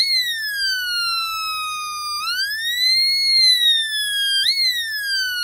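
A small speaker gives out a loud electronic tone that slowly glides down and up in pitch.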